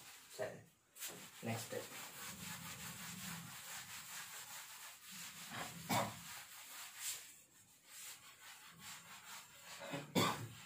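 A cloth rubs across a blackboard, wiping it.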